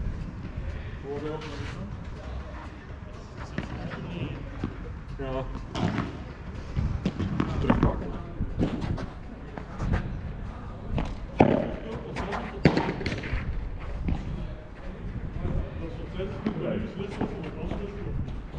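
Men talk casually nearby, outdoors.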